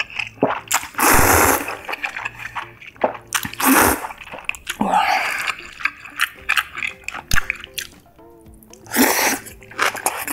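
A young woman slurps noodles loudly close up.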